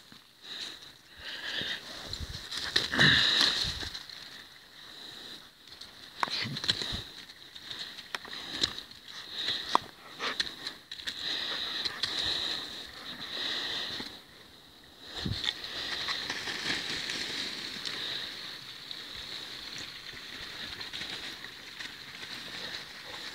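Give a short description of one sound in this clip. Dry leaves rustle and crunch as a dog runs through them.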